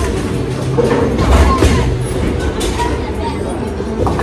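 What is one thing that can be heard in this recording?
A bowling ball rumbles down a lane.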